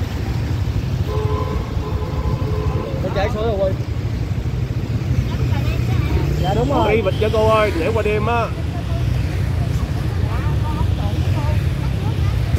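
A motorbike engine idles with a low steady rumble.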